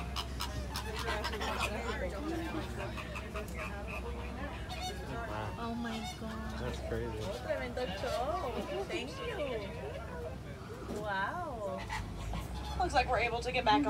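Women talk and exclaim with excitement close by.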